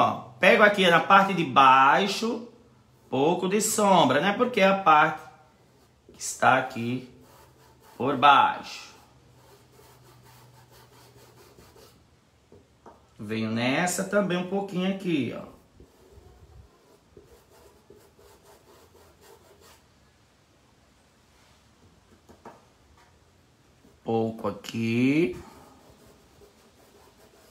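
A paintbrush softly brushes across cloth.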